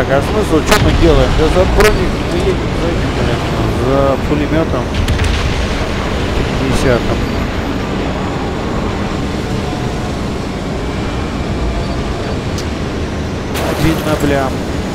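A heavy vehicle engine rumbles steadily as it drives over rough ground.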